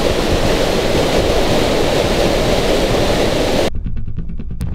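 A stream of water rushes and splashes over rocks outdoors.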